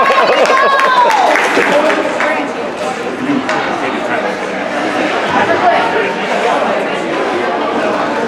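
A crowd of young players and spectators chatter and shout in a large echoing rink.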